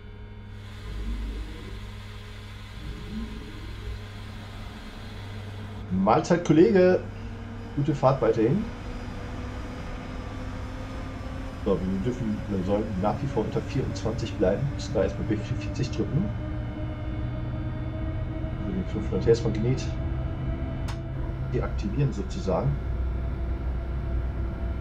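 A train's motor hums and its wheels rumble steadily on the rails.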